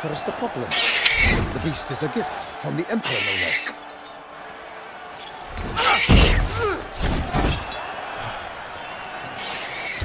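Another man speaks with animation.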